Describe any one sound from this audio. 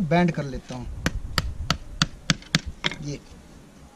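A hammer taps sharply on wood in quick blows.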